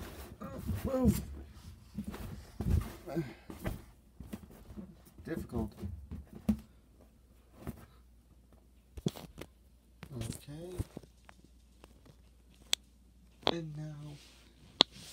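Inflatable plastic rubs and squeaks close by.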